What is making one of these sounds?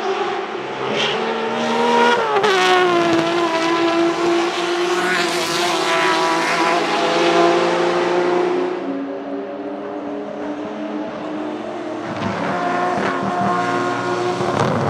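A racing car engine roars loudly as the car speeds past.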